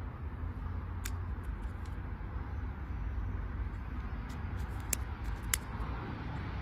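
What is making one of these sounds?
A car key's blade snaps in and out with sharp clicks.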